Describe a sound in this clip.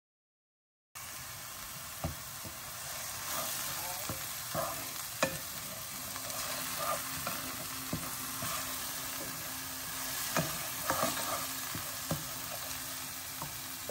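Food sizzles softly in a hot frying pan.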